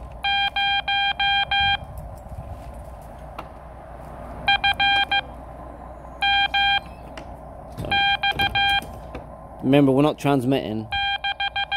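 A metal key paddle clicks softly as it is tapped.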